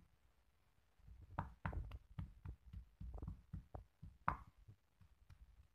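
A stone pestle pounds and grinds in a stone mortar with dull thuds.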